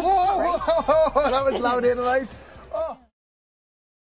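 A man shouts with animation close to a microphone.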